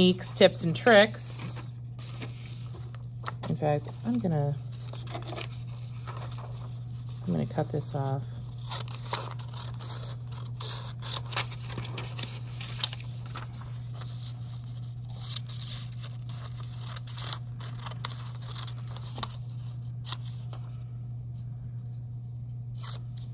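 Paper rustles as it is handled and folded.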